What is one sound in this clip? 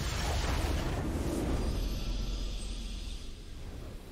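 A triumphant game fanfare plays.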